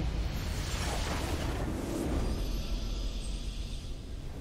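A triumphant fanfare swells up.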